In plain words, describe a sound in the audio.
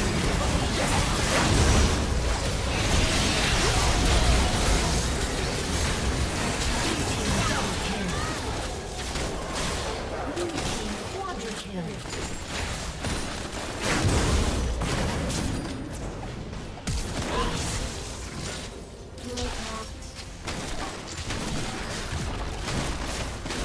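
Magic blasts crackle and boom in a rapid, chaotic fight.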